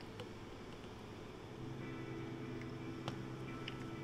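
A thick drink pours into a cup.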